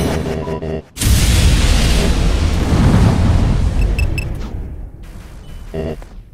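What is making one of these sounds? A fiery blast roars and rushes past.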